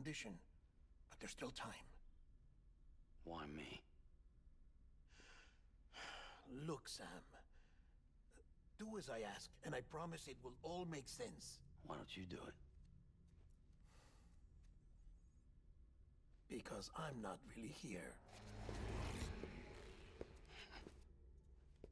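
A man speaks calmly, close to a microphone.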